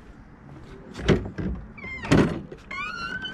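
A metal door latch clunks.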